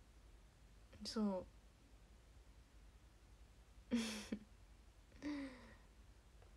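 A young woman speaks in short bursts, close to the microphone.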